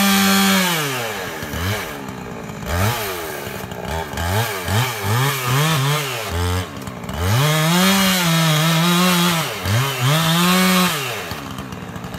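A chainsaw revs up and down loudly, cutting into wood.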